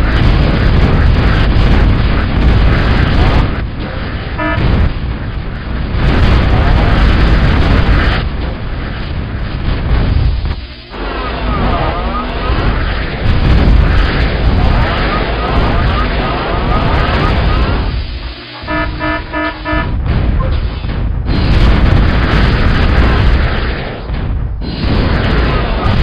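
Explosions boom in battle.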